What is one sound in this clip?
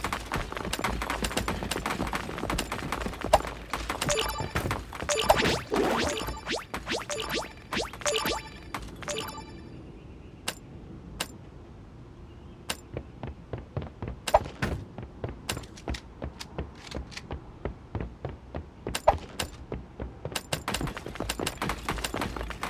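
Quick footsteps patter steadily.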